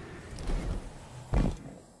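A rushing whoosh sweeps past.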